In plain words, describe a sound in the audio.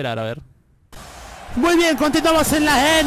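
A crowd cheers and shouts loudly in a large arena.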